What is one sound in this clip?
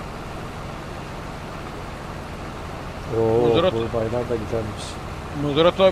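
Grain pours from a spout into a trailer with a soft rushing hiss.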